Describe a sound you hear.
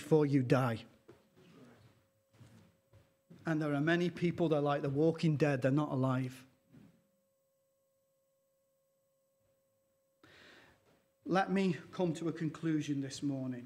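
A middle-aged man speaks calmly through a microphone, with long pauses.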